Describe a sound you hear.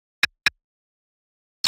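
A menu beeps twice.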